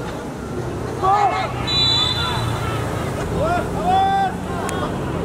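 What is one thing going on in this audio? Players shout to each other outdoors across a pitch.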